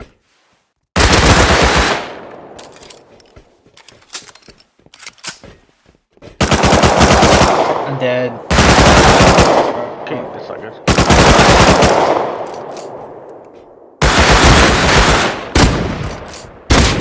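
A shotgun fires loud, booming blasts that echo away slowly.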